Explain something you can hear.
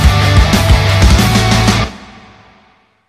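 Loud hits and energy blasts crash.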